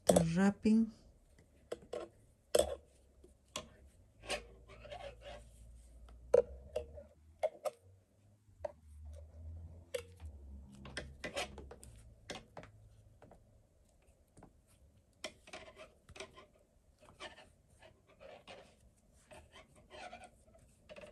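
Yarn rustles and rubs softly as hands handle a crocheted flower.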